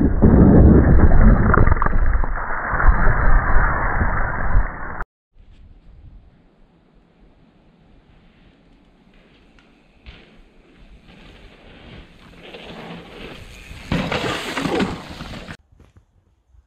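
Bike tyres skid and spray loose dirt.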